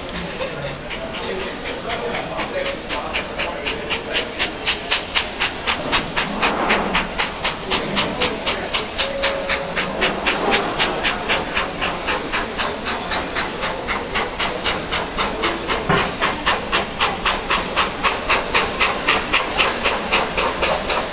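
A steam locomotive chuffs rhythmically as it approaches, growing louder.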